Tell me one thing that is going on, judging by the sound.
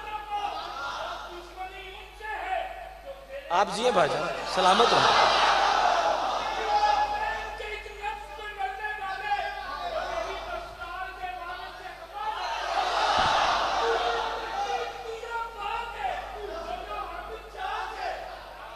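A man sings loudly through a loudspeaker in a large echoing hall.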